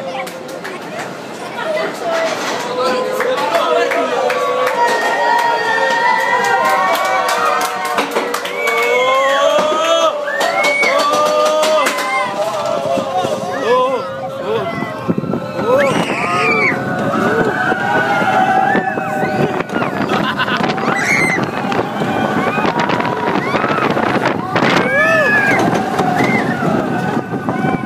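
A roller coaster rumbles and clatters along its track.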